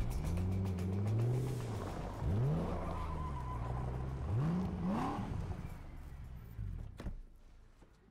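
A sports car engine revs loudly and roars.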